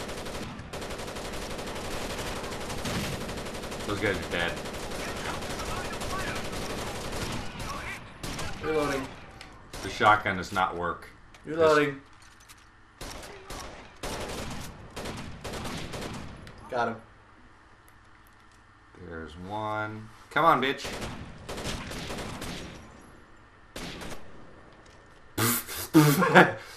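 Rapid gunfire crackles in short bursts.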